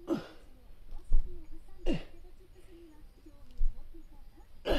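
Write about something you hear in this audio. A body shifts and thumps softly on bedding.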